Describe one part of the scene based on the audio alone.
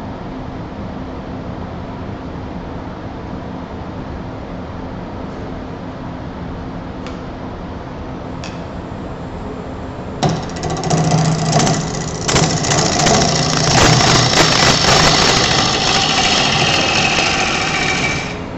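A wood lathe motor hums steadily.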